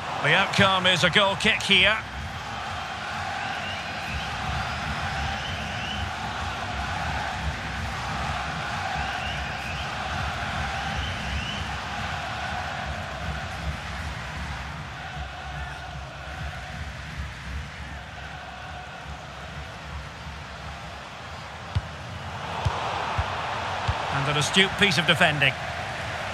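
A large stadium crowd chants and roars steadily.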